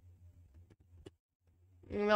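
A gun is drawn with a short metallic click.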